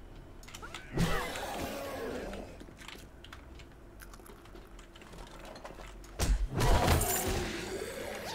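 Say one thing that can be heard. A zombie groans and snarls.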